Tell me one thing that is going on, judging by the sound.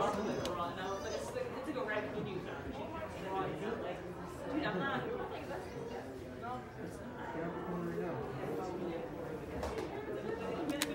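A young man talks into a phone close by, muffled by a face mask.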